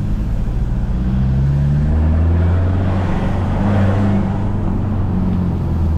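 A car engine hums steadily, its pitch rising and falling as it climbs and shifts gears.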